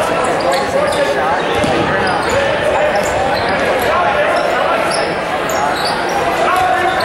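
A crowd in a gym chatters and cheers, echoing.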